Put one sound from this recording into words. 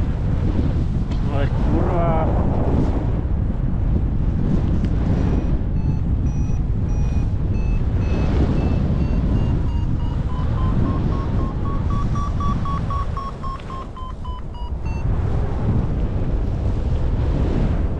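Wind rushes loudly past the microphone outdoors.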